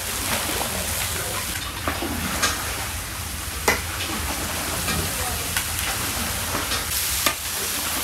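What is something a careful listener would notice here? Meat sizzles loudly in a large pot.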